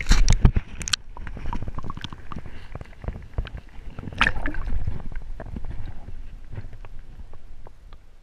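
Muffled underwater bubbling and knocking sounds continue.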